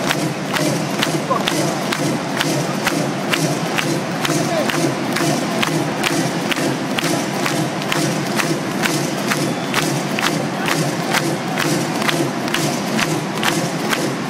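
Drums pound in a steady, fast beat.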